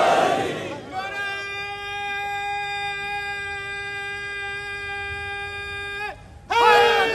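A man chants loudly through a loudspeaker, holding a long note.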